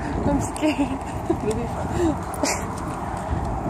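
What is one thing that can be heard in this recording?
A young woman laughs close to the microphone.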